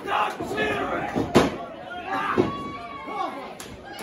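A referee slaps the ring mat while counting.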